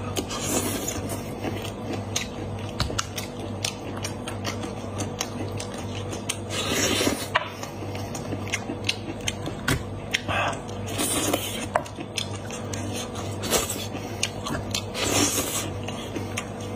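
A man chews and slurps food wetly, close up.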